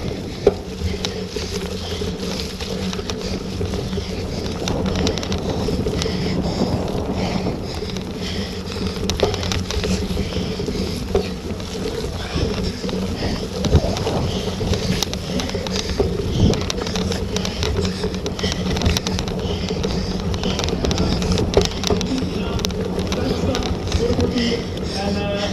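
Bicycle tyres roll and rattle over bumpy, muddy grass.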